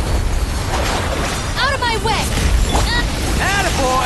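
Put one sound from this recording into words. Magical attacks whoosh and crackle in bursts.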